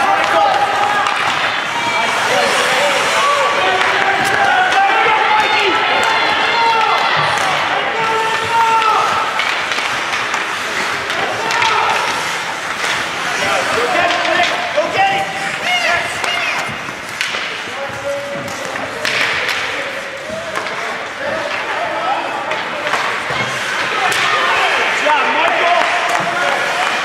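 A crowd of spectators shouts and cheers in an echoing rink.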